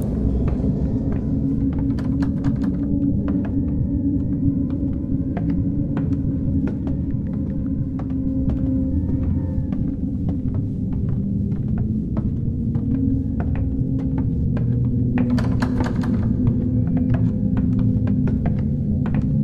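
Footsteps thud on a wooden floor.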